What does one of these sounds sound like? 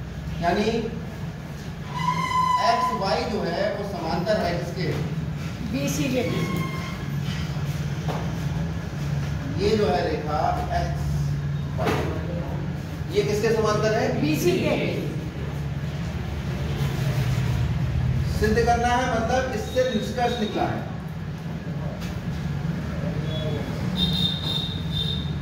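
A marker squeaks and scratches across a whiteboard.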